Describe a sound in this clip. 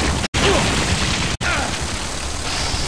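A winged creature shrieks shrilly.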